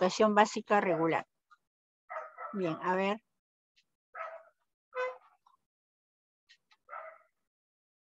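A young woman speaks calmly in short bursts over an online call.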